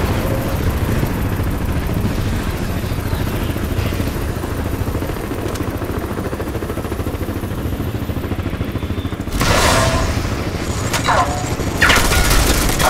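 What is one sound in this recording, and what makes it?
A deep, steady rumble of fire and destruction fills the air.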